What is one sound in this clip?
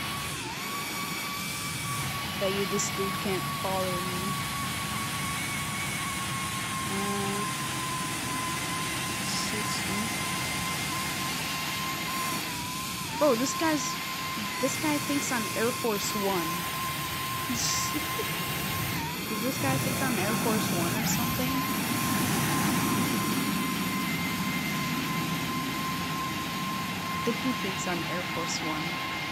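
Jet engines whine and roar steadily.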